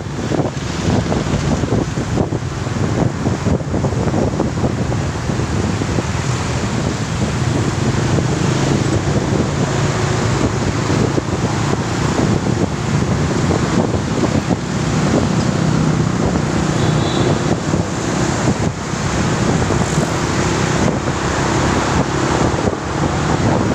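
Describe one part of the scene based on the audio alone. Motorcycles and cars drone past in traffic.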